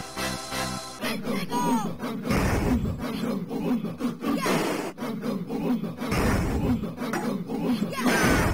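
Bouncy arcade game music plays.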